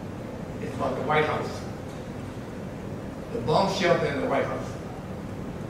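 An elderly man speaks slowly through a microphone in a large room with echo.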